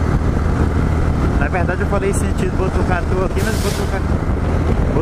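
A tanker truck roars past close by.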